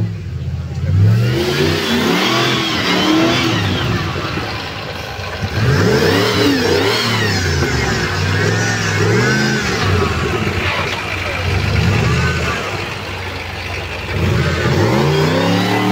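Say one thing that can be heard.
Tyres spin and churn through loose dirt.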